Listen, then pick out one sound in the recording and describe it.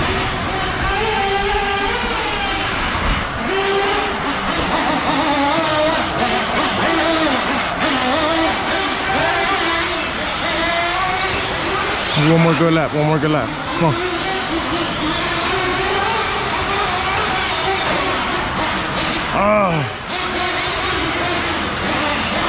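Small electric race cars whine, rising and falling in pitch as they speed around a track.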